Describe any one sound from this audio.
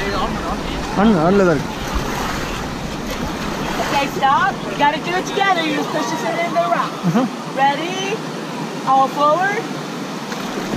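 Young women shout and whoop excitedly nearby, outdoors.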